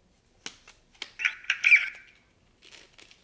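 A plastic blade slides into a metal hilt with a scraping rattle.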